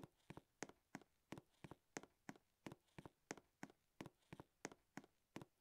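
Quick, light footsteps patter steadily in an even running rhythm.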